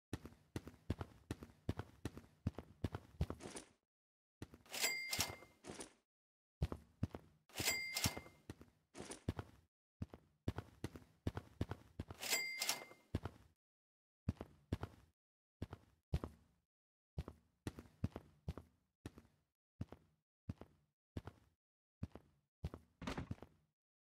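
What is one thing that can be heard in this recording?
Footsteps tap steadily on hard pavement.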